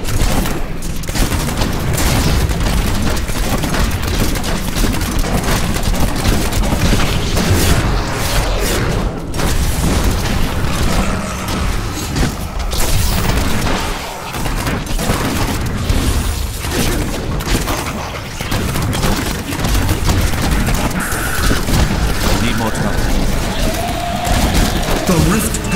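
Video game combat sounds burst out: explosions, crossbow bolts and monster hits.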